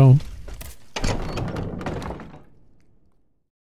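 A heavy wooden door bangs open.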